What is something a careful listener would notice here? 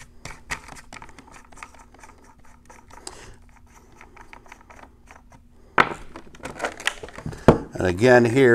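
A plastic lid clicks and rattles in someone's hands.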